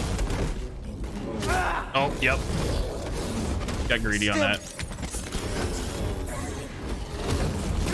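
A lightsaber hums and buzzes steadily.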